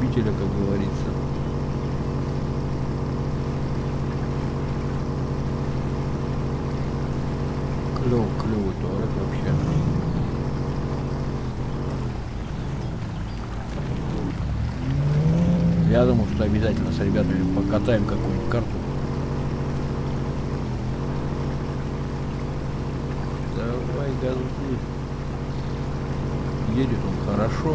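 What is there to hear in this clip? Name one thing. Water splashes around a car driving through a river.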